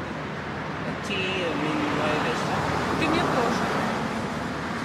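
A woman talks close by, casually.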